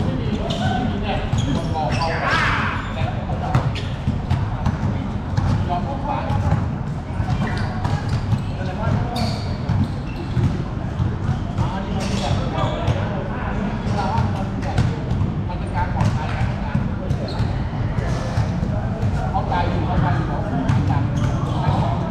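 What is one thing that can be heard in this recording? Young men call out to each other during the game.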